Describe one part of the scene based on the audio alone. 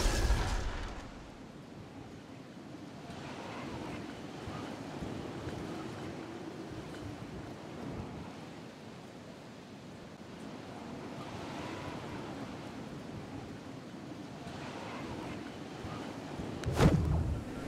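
Wind rushes steadily past during a glide.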